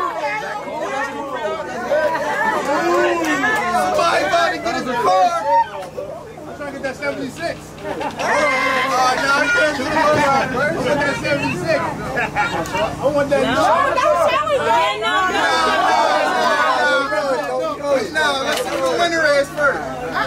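Several men talk and call out.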